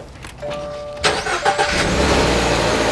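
A car engine cranks and fires up.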